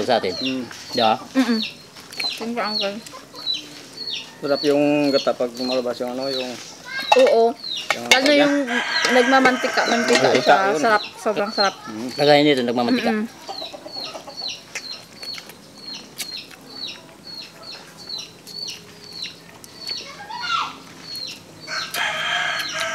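People chew food noisily, smacking their lips close to a microphone.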